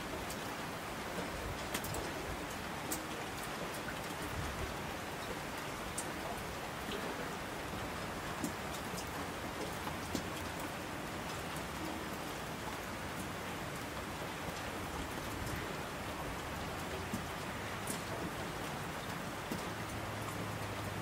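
A torrent of water rushes down a slope.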